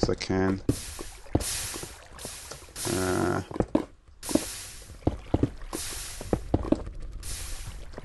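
Lava bubbles and pops with short hissing bursts.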